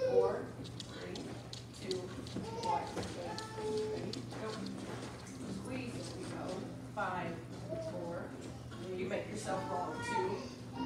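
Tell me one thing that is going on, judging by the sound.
Young girls talk and call out.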